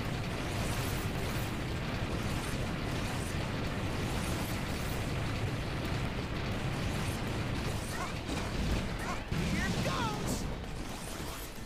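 Explosions boom and rumble in quick succession.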